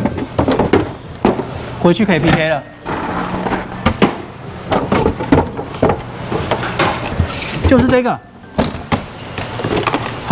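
A plastic box rattles and clatters as a young man handles it.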